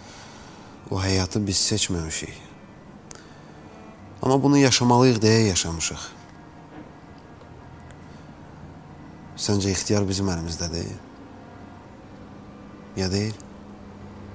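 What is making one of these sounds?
A young man speaks calmly and quietly, close by.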